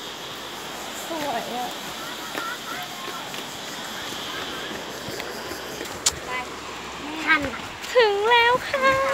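A young woman speaks close by, casually.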